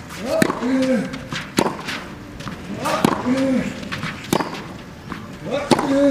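Tennis balls are struck sharply back and forth with rackets.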